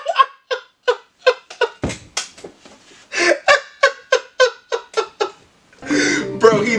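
A young man laughs hard and close, in rapid bursts.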